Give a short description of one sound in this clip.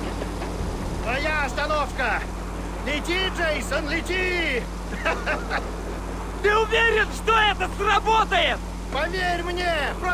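A man talks casually and at ease, close by.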